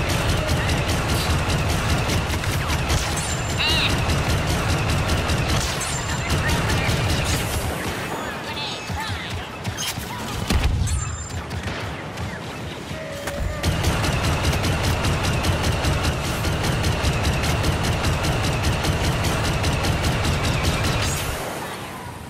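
Rapid blaster fire crackles and zaps in bursts.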